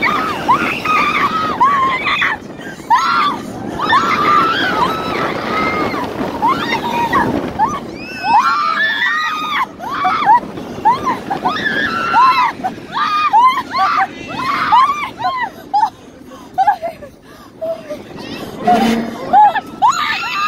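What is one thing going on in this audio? Young women scream and laugh loudly close by.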